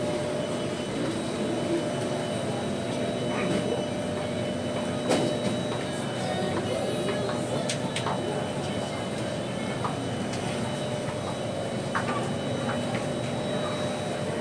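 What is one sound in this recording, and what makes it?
A crowd of passengers murmurs and chatters nearby.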